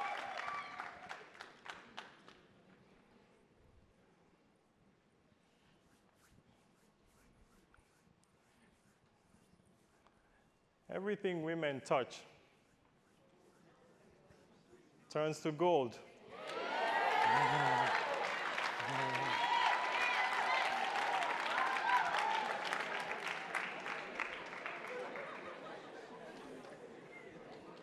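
A man claps his hands rhythmically.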